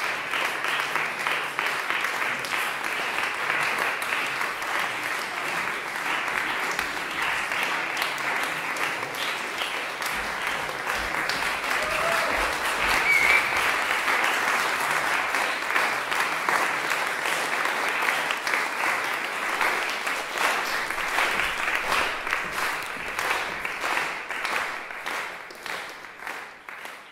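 A large audience applauds steadily in an echoing hall, then the clapping fades away.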